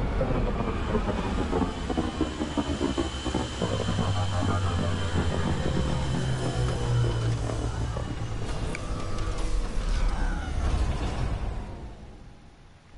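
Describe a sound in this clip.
A spacecraft's jet engines roar loudly as it descends and lands, then die away.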